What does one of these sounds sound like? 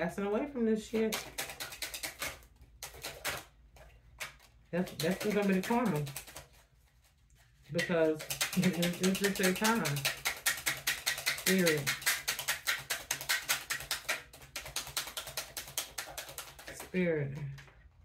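Playing cards riffle and flutter as a young woman shuffles them.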